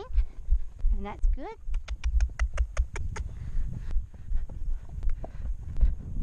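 A horse's hooves thud steadily on dirt.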